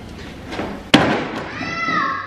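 A body thuds down onto wooden stairs.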